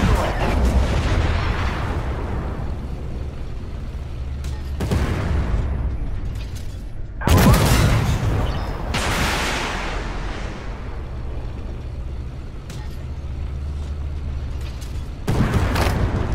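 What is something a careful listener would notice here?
A tank cannon fires with a loud boom, echoing away.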